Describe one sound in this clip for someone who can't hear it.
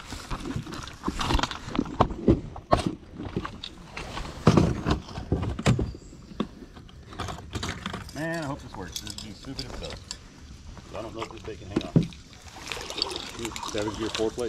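A plastic bag crinkles as it is handled up close.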